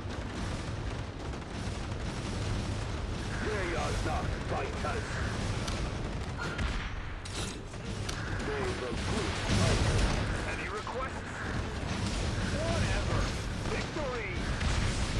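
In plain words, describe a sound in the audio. Guns fire and explosions boom in a noisy battle.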